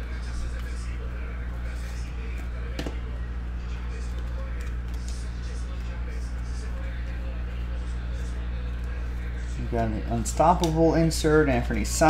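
Trading cards rustle and slide against each other as they are shuffled by hand.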